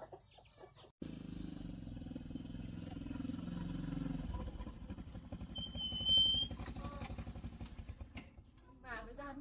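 A motorbike engine rumbles close by, then stops.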